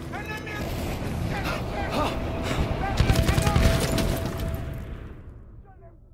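Rapid gunfire rattles loudly and close.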